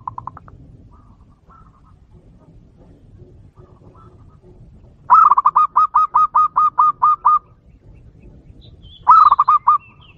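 A dove calls close by in a rapid series of high, bubbling coos.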